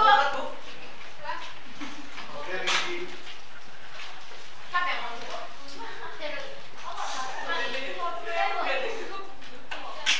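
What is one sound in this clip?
Footsteps shuffle as people walk about.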